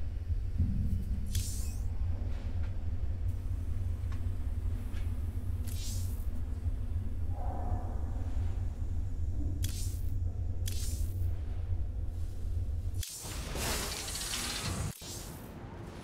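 Menu buttons click with short whooshing chimes.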